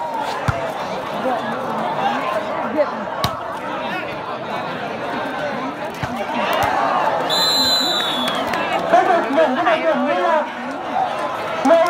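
A large outdoor crowd chatters and cheers.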